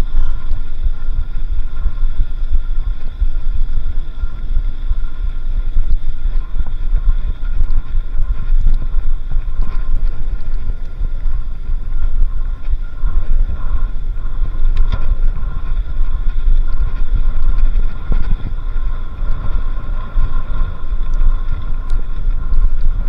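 Bicycle tyres roll and crunch over a sandy dirt track.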